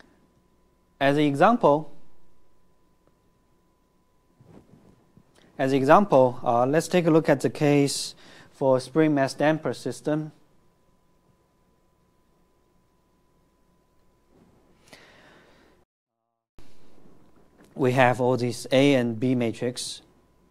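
A man explains calmly through a microphone, in short bursts with pauses.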